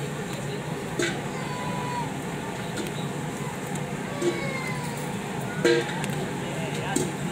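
Metal tongs click against a grill.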